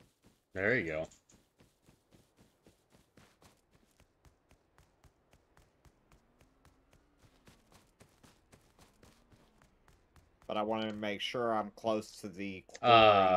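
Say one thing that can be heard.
Footsteps tap steadily at a walking pace.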